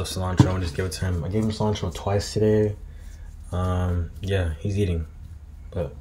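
A young man talks casually and close by, as if into a computer microphone.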